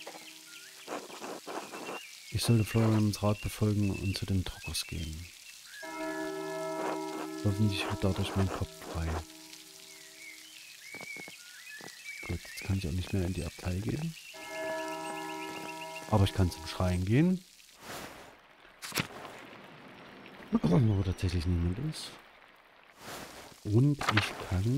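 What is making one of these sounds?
A man talks calmly and closely into a microphone.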